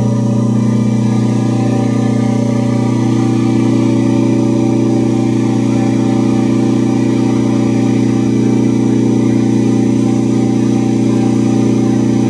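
A large diesel engine runs steadily with a loud, droning hum.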